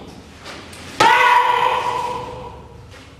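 A man lets out a sharp, loud shout.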